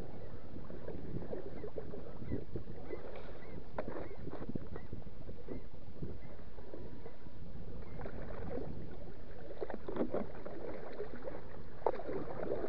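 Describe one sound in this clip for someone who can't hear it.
A paddle splashes through the water.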